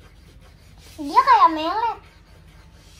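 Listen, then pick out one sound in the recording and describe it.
A young girl calls out in a high, sing-song voice close by.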